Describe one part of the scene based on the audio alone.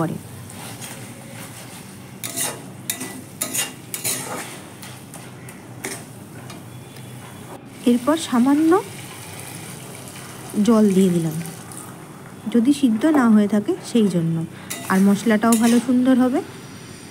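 A metal spatula scrapes and stirs a thick mixture in a metal pan.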